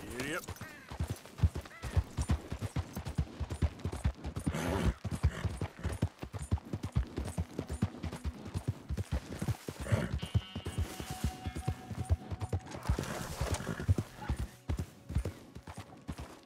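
A horse's hooves gallop in a quick, steady rhythm.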